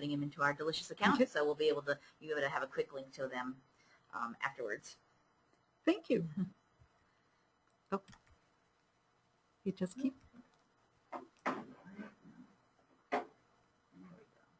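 A woman speaks calmly through a microphone, pausing now and then.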